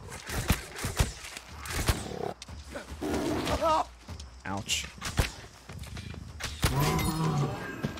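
A bow twangs as arrows are loosed.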